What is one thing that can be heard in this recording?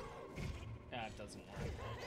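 A sword swishes as it slashes.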